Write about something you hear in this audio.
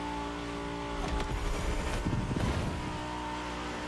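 A car's boost bursts with a rushing whoosh.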